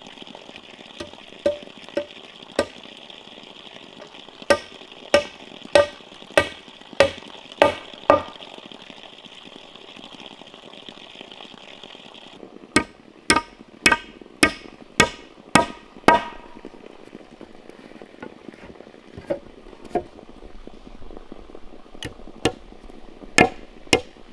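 A hammer knocks on wood in sharp, evenly spaced blows.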